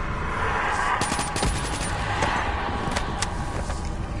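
A gun fires several quick shots.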